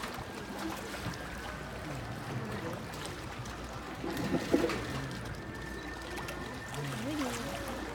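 Water pours from a bucket.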